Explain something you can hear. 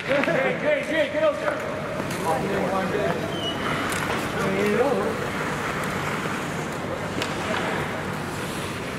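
Hockey sticks clack against the ice and puck.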